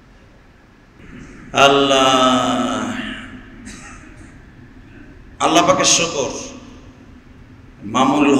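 A man preaches in a long, drawn-out chanting voice through a microphone and loudspeakers.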